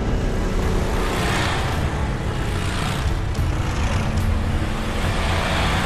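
A motorcycle engine rumbles steadily as it drives along a dirt road.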